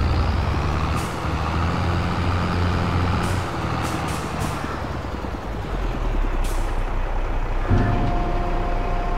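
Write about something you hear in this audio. A tractor engine rumbles steadily as a tractor drives slowly.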